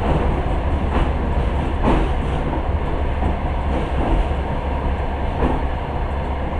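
Train wheels click and knock over rail joints.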